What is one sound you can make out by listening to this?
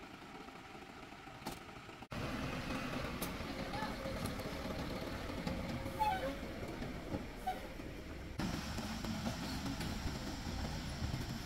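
A truck engine rumbles steadily as the truck drives slowly.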